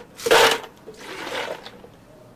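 Milk pours into a plastic jug.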